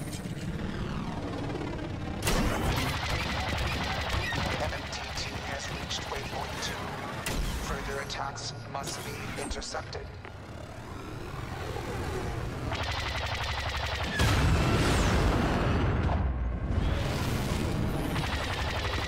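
A starfighter's engines roar steadily.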